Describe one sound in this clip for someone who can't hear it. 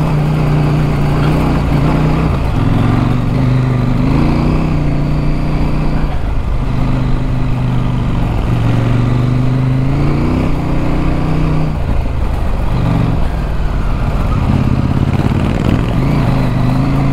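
A motorcycle engine hums close by, rising and falling as it shifts gears.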